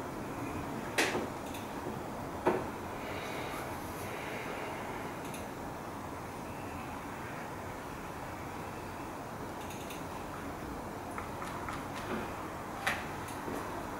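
A metal palette knife taps now and then.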